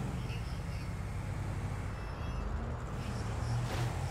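A motorcycle engine starts up and idles.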